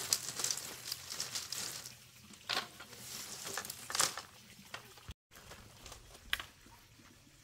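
Bamboo strips crack and snap.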